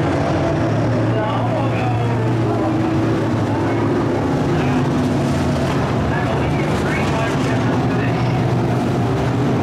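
Race car engines roar loudly as cars speed past close by.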